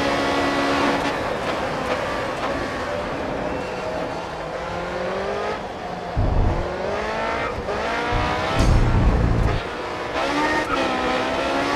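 A racing car engine drops in pitch as the car brakes hard, then revs up again.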